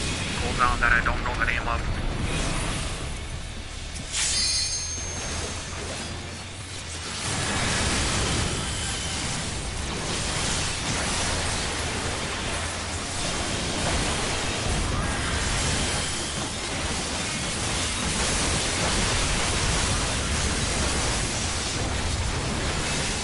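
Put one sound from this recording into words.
Magic spells whoosh, chime and crackle in a busy video game battle.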